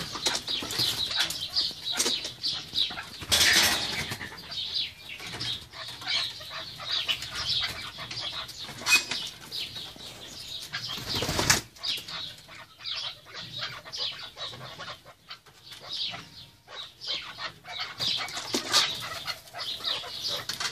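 Wings flap in a sudden burst as a partridge flies up.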